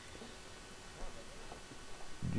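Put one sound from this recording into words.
A pickaxe chips at stone blocks with quick taps.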